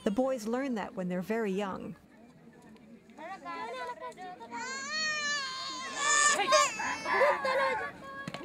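Women talk with animation nearby outdoors.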